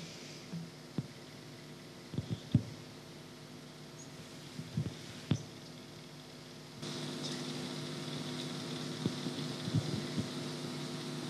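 Small knocks and rustles sound on a microphone nearby.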